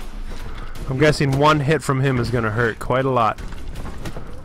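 A man speaks in a deep, gruff voice.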